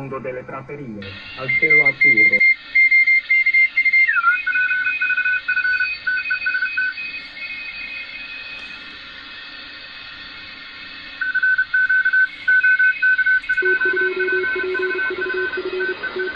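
A radio receiver plays beeping morse-like tones.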